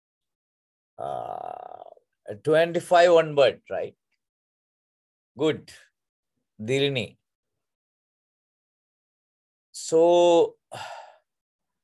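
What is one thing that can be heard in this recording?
A man speaks in short phrases through an online call microphone, with long pauses.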